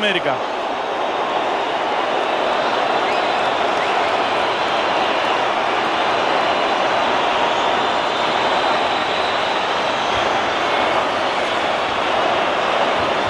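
A large stadium crowd roars loudly throughout.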